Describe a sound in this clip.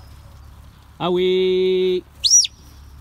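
A sheep bleats.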